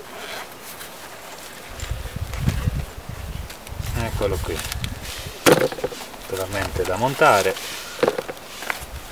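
A zipper is pulled open on a fabric pouch.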